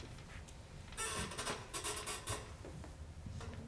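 An audience applauds briefly in a large room.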